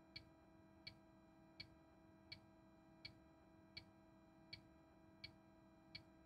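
A bus engine idles with a steady low hum.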